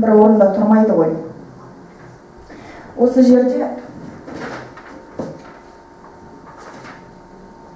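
A young woman speaks calmly into a microphone over loudspeakers in an echoing room.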